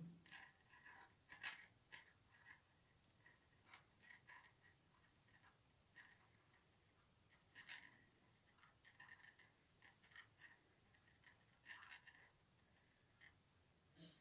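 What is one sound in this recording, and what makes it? Metal knitting needles click and tap softly against each other.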